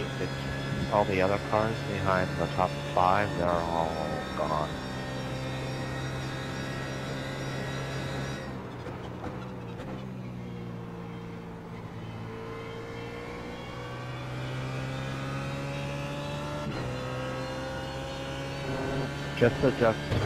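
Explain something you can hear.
A racing car engine drones steadily, its pitch rising and falling with the gears.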